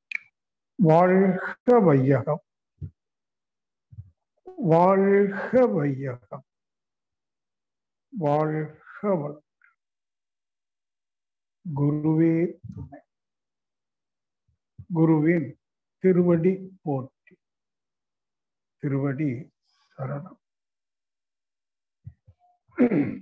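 An elderly man speaks slowly and calmly in short phrases with pauses, heard through an online call.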